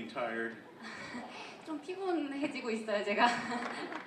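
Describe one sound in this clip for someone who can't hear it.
A young woman talks through a microphone.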